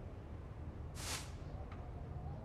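A paper page turns with a quick rustle.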